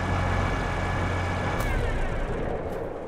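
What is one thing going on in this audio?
A tractor engine hums low and then winds down.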